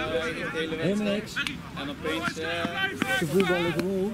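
Players slap hands together in high fives.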